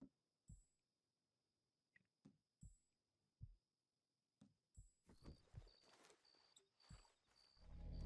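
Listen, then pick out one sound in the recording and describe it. Horse hooves thud on the ground at a gallop.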